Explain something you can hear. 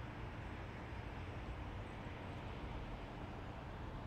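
A car drives past on the road nearby.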